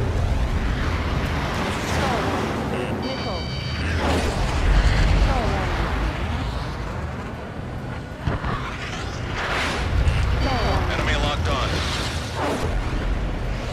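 Wind rushes loudly past a jet cockpit.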